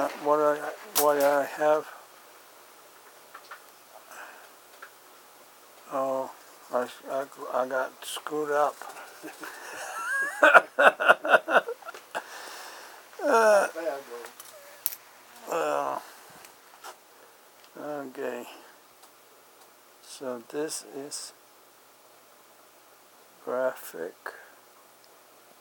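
An elderly man speaks close by in short, calm bursts with pauses.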